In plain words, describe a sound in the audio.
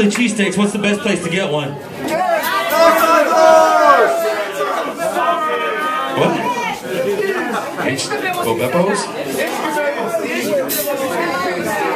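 A man sings loudly into a microphone over a loudspeaker.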